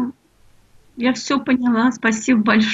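A middle-aged woman speaks over an online call.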